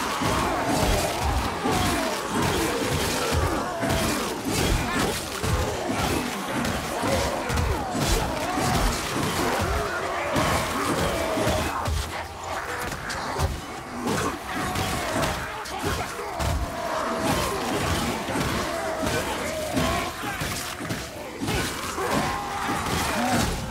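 A club thuds heavily against creatures again and again.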